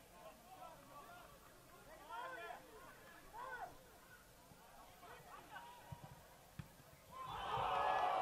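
Players shout across a football pitch outdoors.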